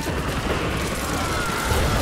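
A submachine gun fires rapid bursts up close.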